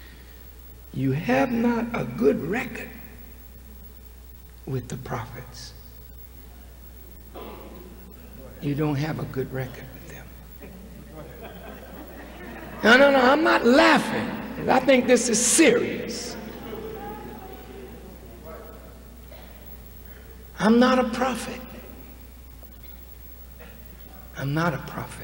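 A man speaks slowly and forcefully into a microphone over loudspeakers, with long pauses, in a large echoing hall.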